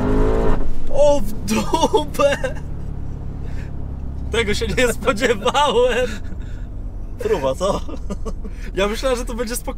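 Two men laugh heartily.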